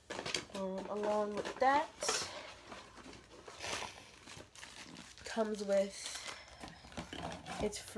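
Paper packaging crinkles and rustles as it is handled.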